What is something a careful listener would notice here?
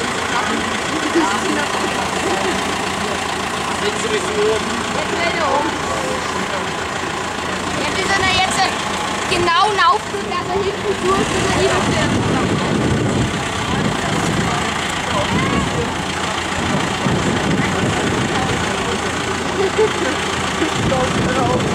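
A diesel tractor engine runs while its hydraulic front loader lifts.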